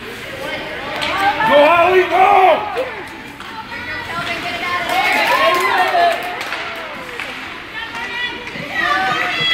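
Adult spectators shout and cheer in a large echoing arena.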